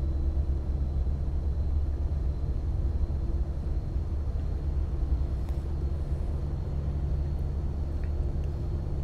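A heavy truck engine rumbles steadily at cruising speed.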